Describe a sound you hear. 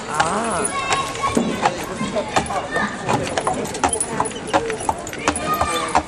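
A horse's hooves clop on a paved path.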